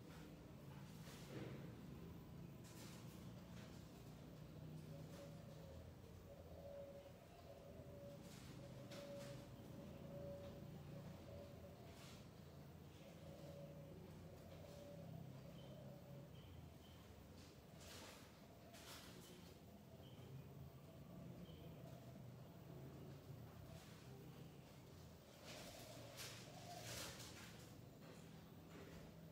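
A ceiling fan whirs steadily overhead.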